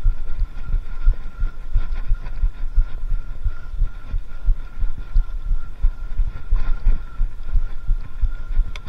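A bicycle chain and frame rattle.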